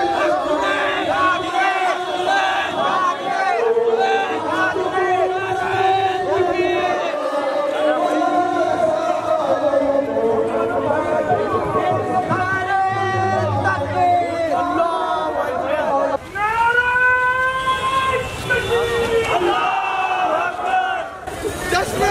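A crowd of men chants loudly together outdoors.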